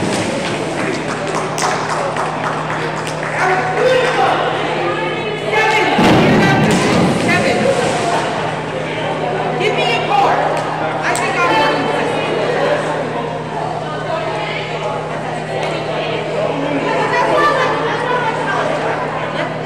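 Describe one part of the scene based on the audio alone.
A crowd of people talks and cheers in a large echoing hall.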